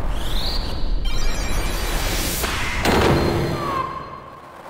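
A magic spell bursts with a bright shimmering whoosh.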